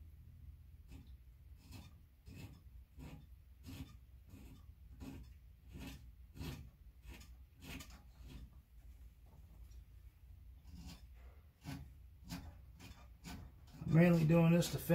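A tool clicks against a metal panel in a steady rhythm.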